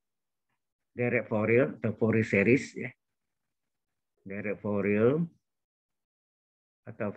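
A man speaks calmly, explaining, heard through an online call.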